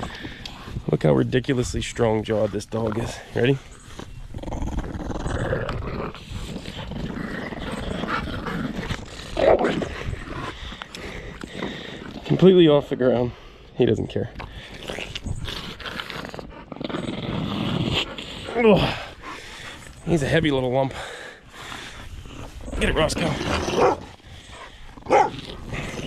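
A puppy growls playfully while tugging on a toy.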